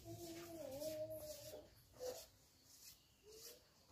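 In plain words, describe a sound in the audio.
A hand rubs a polished wooden panel, squeaking.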